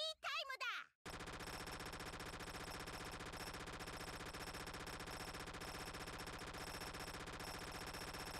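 Game shots fire in a rapid, steady stream of bursts.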